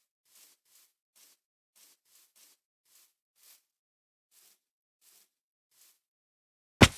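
Soft footsteps pad across grass.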